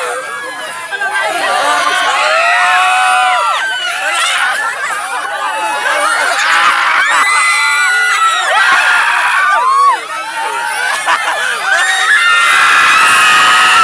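A crowd of young people laughs and shrieks loudly close by.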